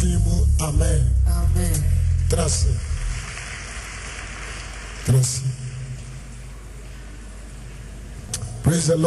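A man preaches forcefully into a microphone, heard over a loudspeaker with pauses between phrases.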